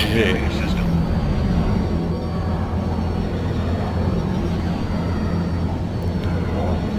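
A spaceship engine roars with a steady low rumble.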